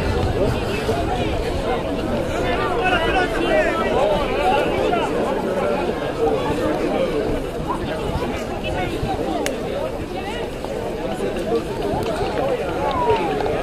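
Men talk nearby among a small group of spectators.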